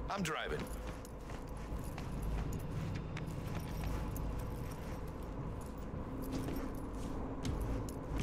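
Footsteps fall on a concrete floor.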